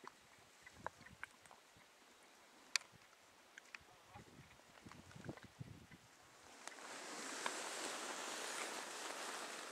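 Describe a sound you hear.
Clothing rustles and dry twigs crackle close by.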